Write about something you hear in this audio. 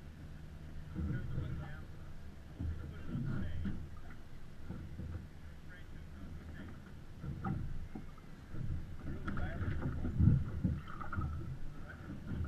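Men talk nearby over the wind.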